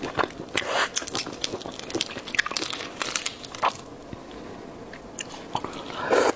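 Shellfish shell crackles and snaps as hands peel it up close.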